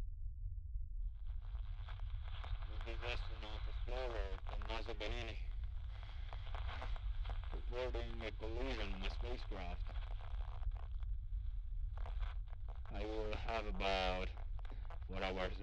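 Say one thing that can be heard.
A man speaks calmly over a radio.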